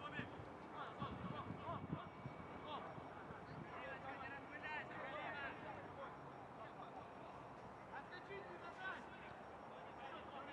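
Young men shout and call to each other at a distance outdoors.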